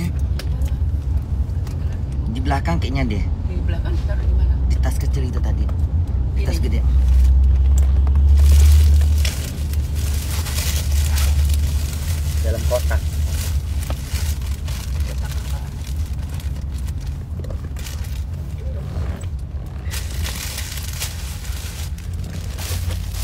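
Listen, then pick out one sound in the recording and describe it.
A low engine rumble hums steadily inside a vehicle.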